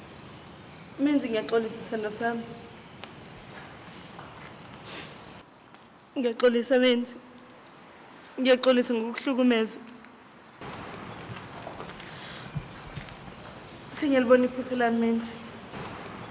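A woman speaks tearfully and pleadingly, close by.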